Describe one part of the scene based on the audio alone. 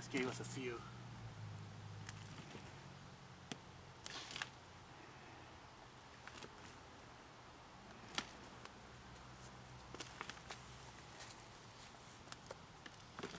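Gloved hands crumble and rustle through loose soil.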